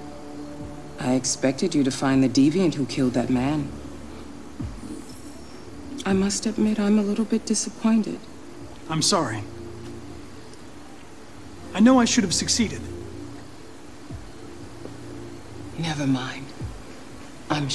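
A middle-aged woman speaks calmly and coolly.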